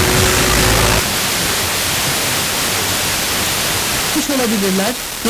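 A car radio hisses with static.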